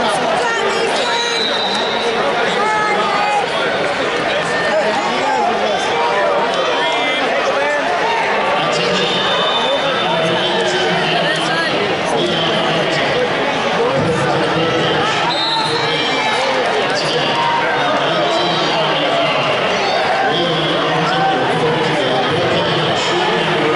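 A large crowd murmurs and chatters throughout a big echoing arena.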